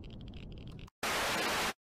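Loud television static hisses steadily, then cuts off.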